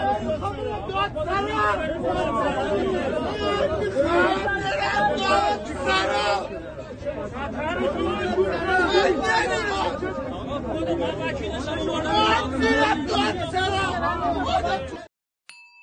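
Several men shout and argue excitedly close by.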